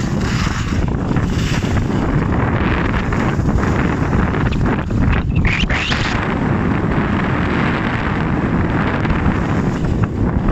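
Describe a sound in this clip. Skis scrape and hiss steadily over hard snow.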